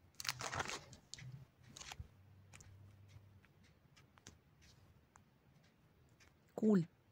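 Plastic binder sleeves crinkle and rustle as pages are turned.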